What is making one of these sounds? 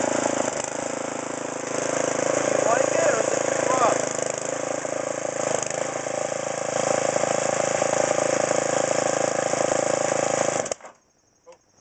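A tiller's petrol engine runs loudly and steadily, then cuts off.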